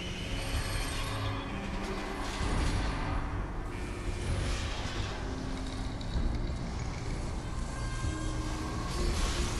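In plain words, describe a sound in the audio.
A large robot's machinery grinds and clanks heavily.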